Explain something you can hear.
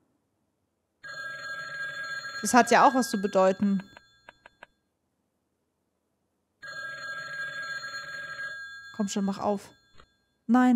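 A telephone rings.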